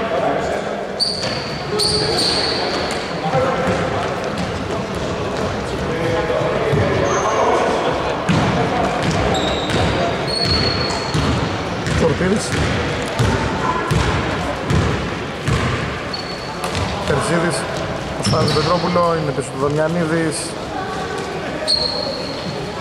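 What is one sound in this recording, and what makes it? Sneakers squeak sharply on a hardwood court in a large echoing hall.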